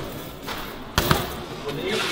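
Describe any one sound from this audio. A bike lands hard on a floor with a loud bang.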